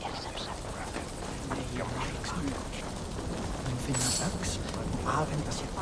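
A bonfire crackles close by.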